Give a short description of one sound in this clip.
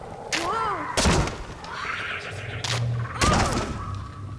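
A heavy object crashes to the ground with a loud thud.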